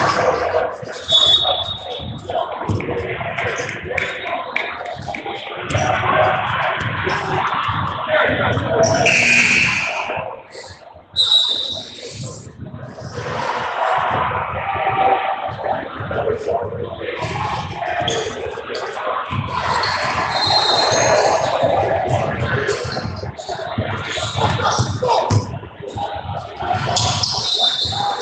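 Young players chatter in a large echoing gym.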